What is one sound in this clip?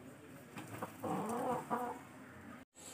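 A rooster crows nearby.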